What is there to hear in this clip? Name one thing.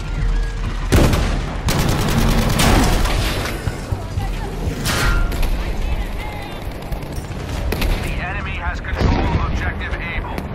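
Explosions burst with loud roaring crashes.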